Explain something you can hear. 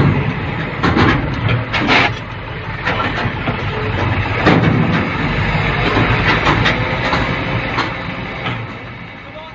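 Metal clanks and bangs as a container tips.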